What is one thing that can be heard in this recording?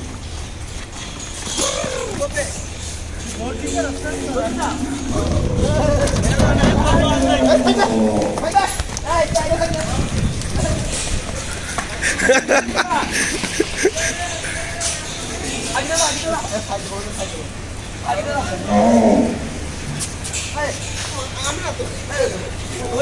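Young men shout and call out nearby.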